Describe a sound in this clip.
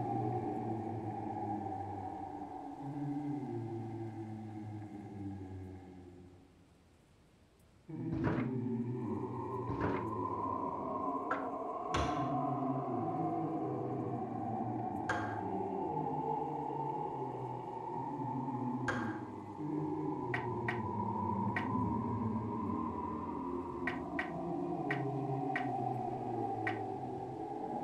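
Calm music plays and briefly fades out.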